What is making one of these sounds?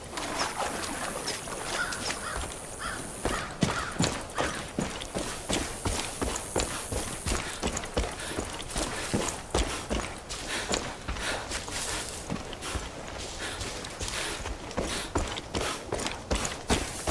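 Footsteps crunch steadily over dirt and brush.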